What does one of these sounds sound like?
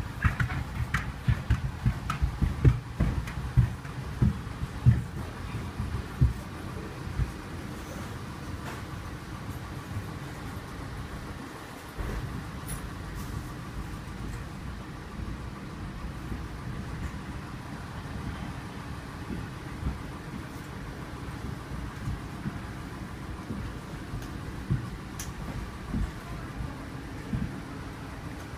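Footsteps thump on a hard floor as people walk in a line.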